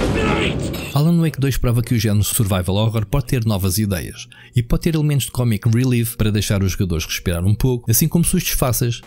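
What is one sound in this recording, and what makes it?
A man speaks calmly and closely, as if narrating.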